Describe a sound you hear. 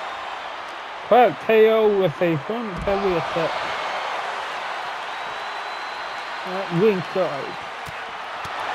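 A large crowd roars steadily in a big arena.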